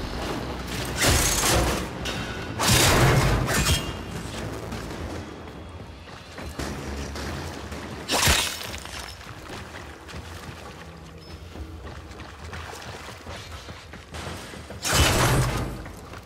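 Blades slash and clang against metal.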